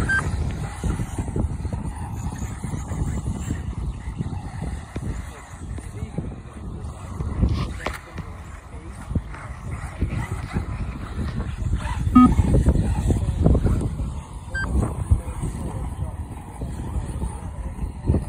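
Small remote-control cars whir and skid across dirt.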